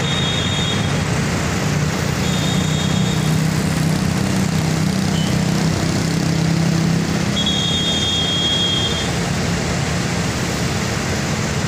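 Traffic passes on a road outdoors.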